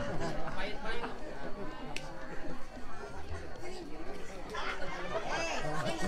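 Several women and men chat nearby.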